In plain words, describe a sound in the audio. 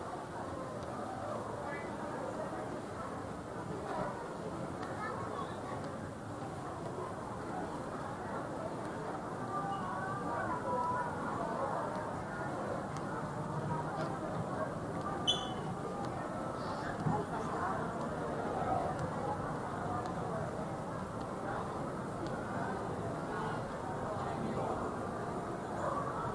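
A crowd of shoppers murmurs and chatters at a distance in a large echoing hall.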